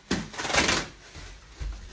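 Plastic wrapping rustles and crackles.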